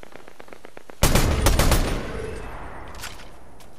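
A gun fires a loud burst of shots that ring out and fade.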